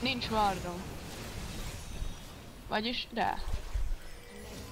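Spell effects whoosh and crackle in a video game battle.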